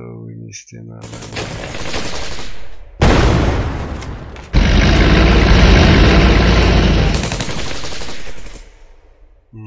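A loud blast and rumble of battle sound effects plays.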